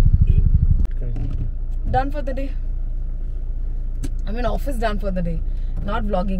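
A man speaks cheerfully nearby inside a car.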